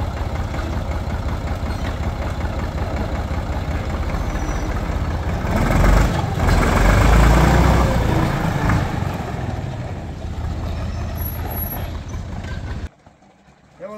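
A tractor engine chugs loudly nearby and revs up as the tractor drives off.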